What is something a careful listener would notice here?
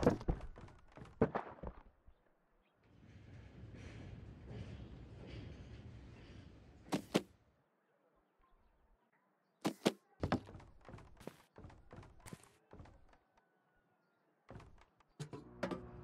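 Feet thud on metal ladder rungs in a steady climb.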